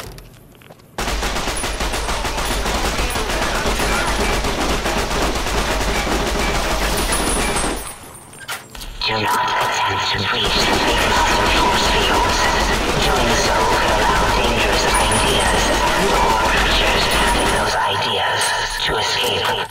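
A gun fires rapid shots with loud bangs.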